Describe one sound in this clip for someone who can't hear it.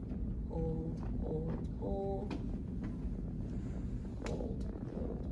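A shoe thuds on a wooden step.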